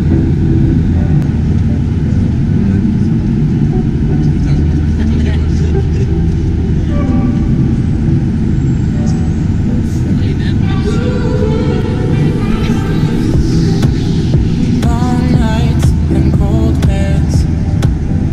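Jet engines roar steadily inside an aircraft cabin.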